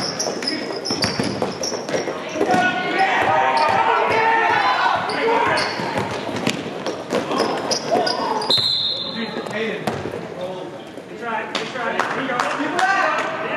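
A basketball bounces on a hard floor.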